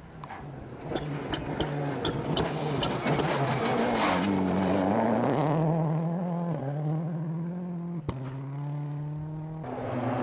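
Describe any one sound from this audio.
Gravel sprays and crackles under spinning tyres.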